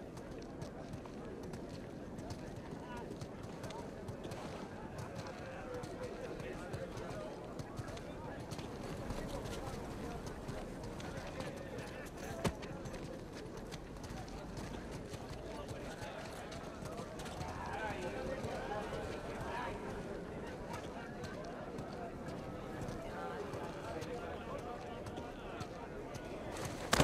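Footsteps walk steadily on hard ground.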